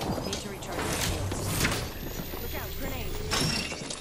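A shield battery whirs and clicks as it charges.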